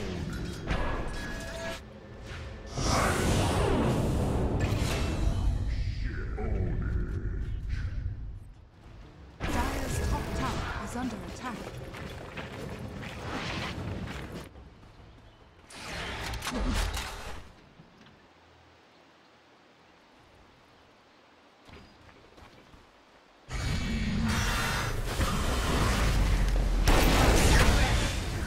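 Game spell effects and combat sounds crash and whoosh loudly.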